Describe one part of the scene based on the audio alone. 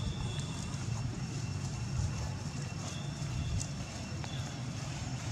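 A monkey's footsteps rustle on dry leaves and grass.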